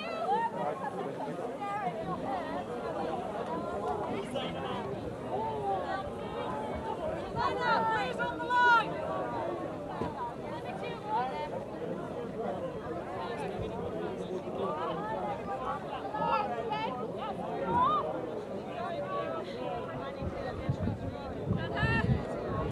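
Several young women shout and call out to each other outdoors.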